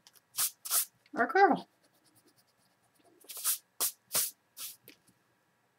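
A hand rubs softly across paper.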